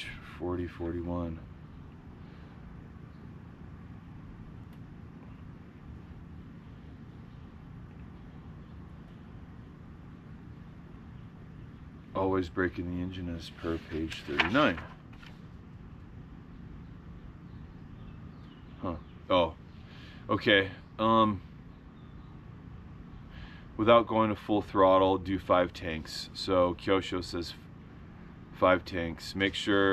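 A middle-aged man speaks calmly and close by, in short bursts with pauses.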